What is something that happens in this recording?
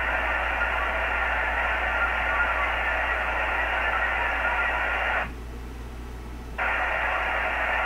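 Radio static hisses steadily, briefly cutting out before returning.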